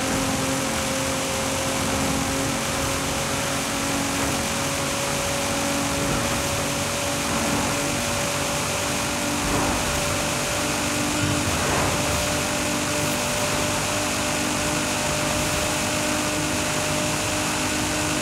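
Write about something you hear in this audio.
A sports car engine roars steadily at high speed, its pitch slowly rising.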